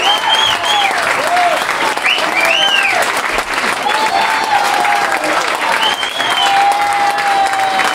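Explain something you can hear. A crowd applauds and cheers loudly.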